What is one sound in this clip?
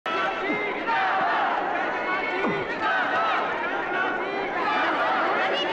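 A dense crowd of men and women shout and clamour all at once.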